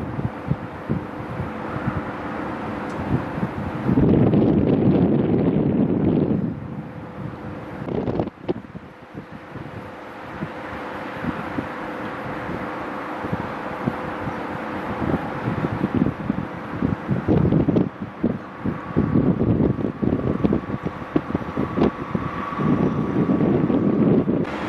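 An electric locomotive hums as it rolls slowly closer.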